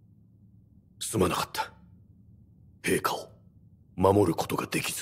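A man speaks quietly and apologetically, close by.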